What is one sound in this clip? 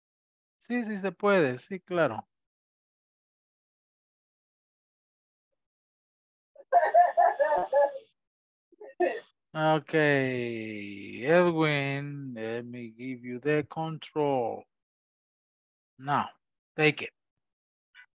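Adults speak in turn over an online call.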